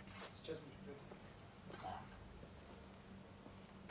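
Cloth rustles as a shirt is handled close by.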